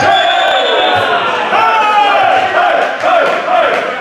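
Men shout and cheer in a large echoing hall.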